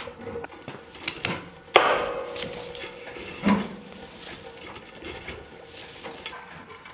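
A metal poker scrapes and knocks against logs.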